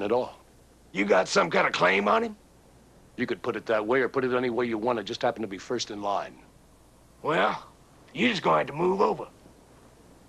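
A second man answers.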